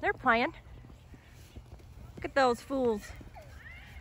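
A horse whinnies loudly nearby.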